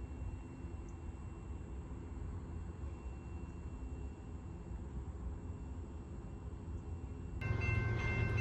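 A diesel locomotive engine rumbles steadily as it rolls slowly along the tracks.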